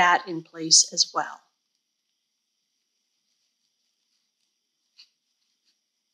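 Fabric and ribbon rustle softly as they are handled.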